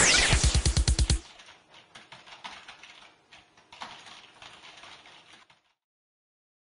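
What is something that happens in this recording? Computer keys click rapidly as someone types on a keyboard.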